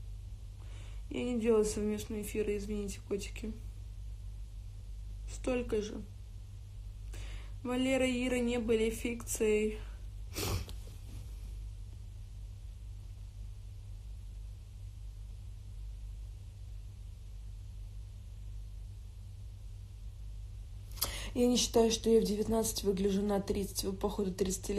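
A young woman talks casually and close into a phone microphone, in short bursts with pauses.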